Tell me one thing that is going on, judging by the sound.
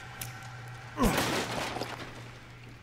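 A knife strikes a wooden crate, which splinters and breaks apart.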